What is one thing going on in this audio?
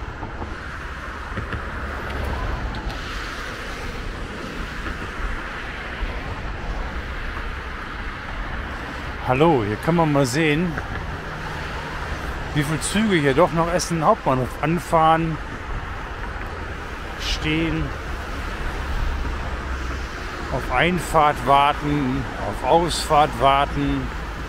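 A train rumbles along the tracks in the distance.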